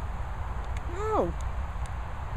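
A dog gives a short, high yelp outdoors.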